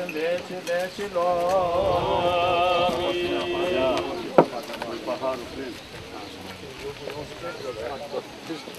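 Men and women talk quietly nearby in a small crowd.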